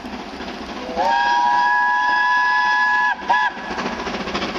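A steam locomotive whistle blows loudly.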